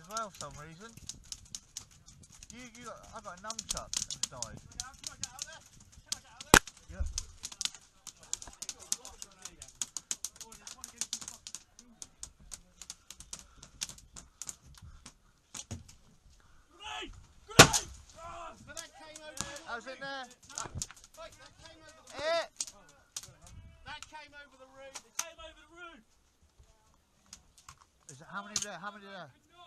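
An airsoft gun fires rapid, sharp clicking shots close by.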